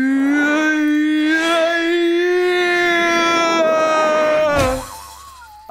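A man sings a long, loud held note.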